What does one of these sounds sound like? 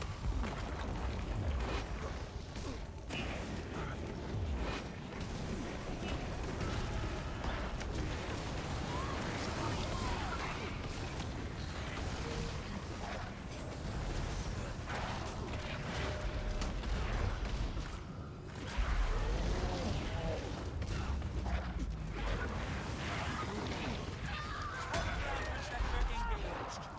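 Game spell effects crackle and boom.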